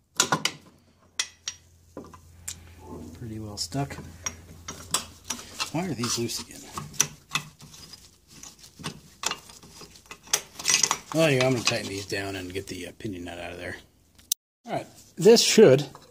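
Metal parts knock and clank as they are handled.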